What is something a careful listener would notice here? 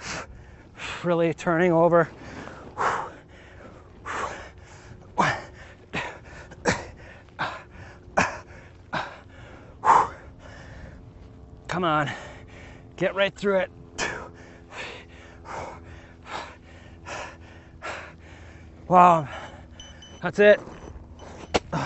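A young man speaks briefly and with energy into a close microphone.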